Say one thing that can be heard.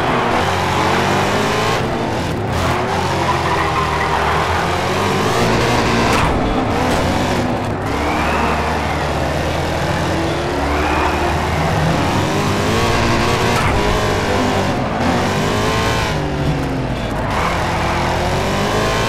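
Car tyres screech and skid on the track.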